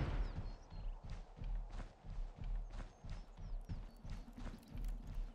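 Footsteps thud quickly and steadily on dirt.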